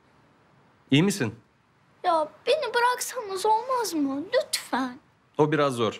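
A young boy speaks in a whiny, upset voice nearby.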